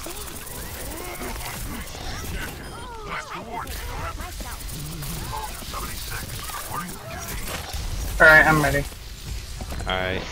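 A game weapon fires rapid bursts of shots.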